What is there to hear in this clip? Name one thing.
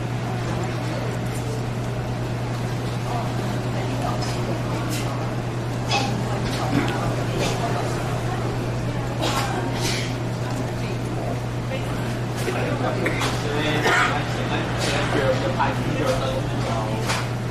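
Several women chatter nearby in a busy, noisy room.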